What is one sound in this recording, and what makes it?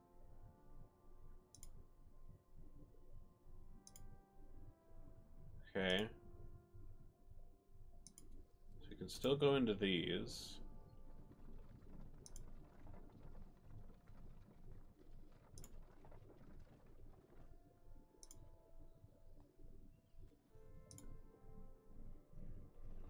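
Soft, gentle music plays throughout.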